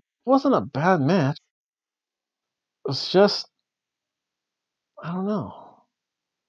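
A middle-aged man reads aloud with expression, close to the microphone.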